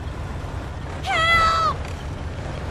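A car door creaks open.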